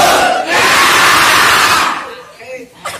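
A crowd of young men shouts and cheers loudly together.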